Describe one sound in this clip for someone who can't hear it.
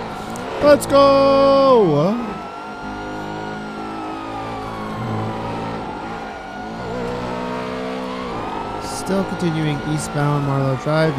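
A police siren wails up and down.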